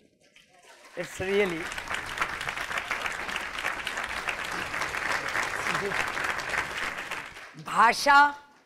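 An audience laughs and applauds.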